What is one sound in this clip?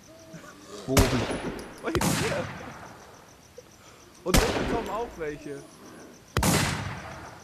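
A rifle fires single loud shots that echo away.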